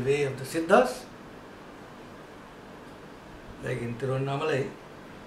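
An older man speaks calmly close by, in short phrases with pauses.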